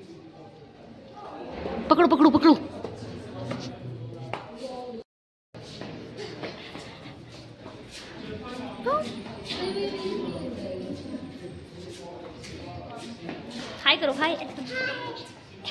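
A child's footsteps patter on a hard floor.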